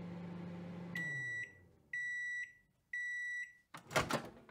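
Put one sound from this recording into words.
A microwave oven beeps three times.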